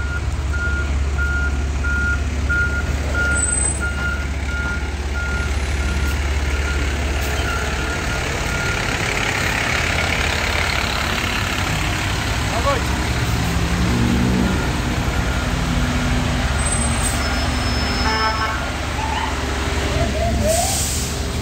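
A large truck engine idles with a deep, steady rumble.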